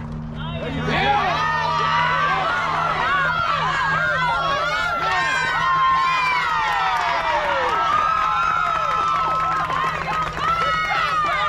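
Young women cheer and shout excitedly outdoors.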